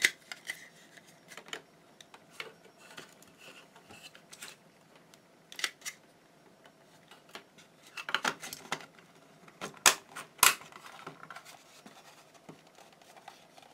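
Plastic parts click and rattle as hands handle them.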